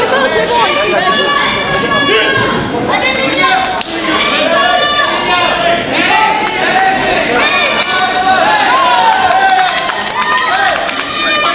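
A crowd of spectators chatters loudly in a large echoing hall.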